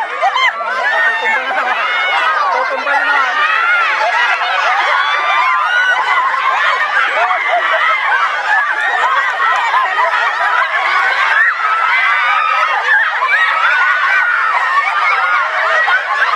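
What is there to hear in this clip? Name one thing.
A crowd of women shriek and scream with excitement close by.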